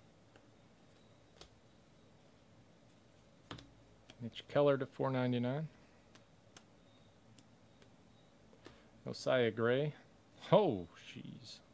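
Trading cards softly rustle and slide as hands flip through a stack.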